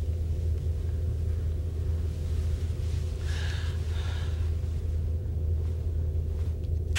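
Bedsheets rustle as a woman shifts on a bed.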